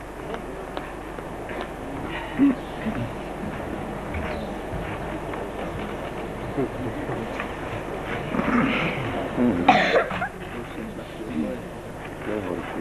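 A man speaks loudly in a theatrical way, heard from some distance outdoors.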